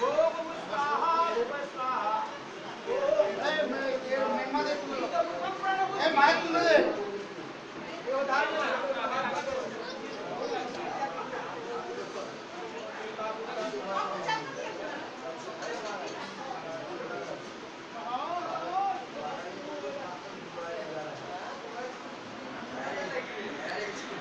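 Several people talk in a busy room.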